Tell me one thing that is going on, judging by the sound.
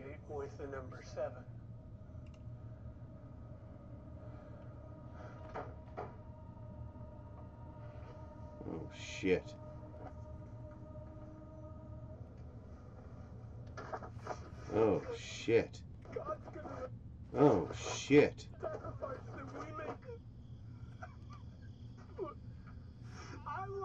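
A man talks close to a microphone, with pauses.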